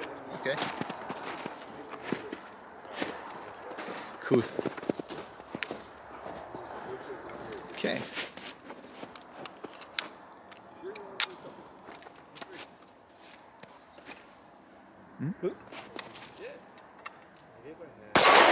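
A man speaks calmly and close by, outdoors.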